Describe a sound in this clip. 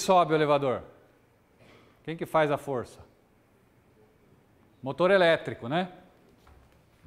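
A man lectures in short bursts.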